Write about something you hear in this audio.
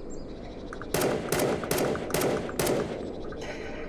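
A pistol fires several quick, loud shots.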